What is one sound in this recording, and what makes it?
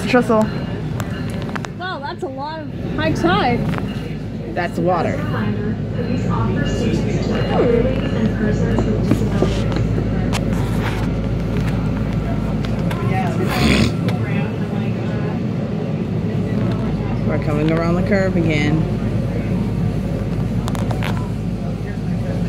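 A vehicle's engine and wheels rumble steadily, heard from inside.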